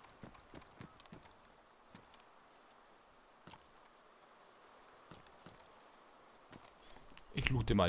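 Footsteps fall on concrete.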